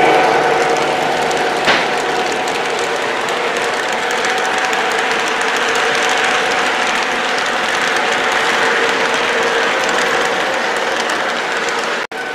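A model train rattles and clatters steadily along the track up close.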